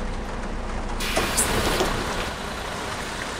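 Bus doors hiss open with a burst of air.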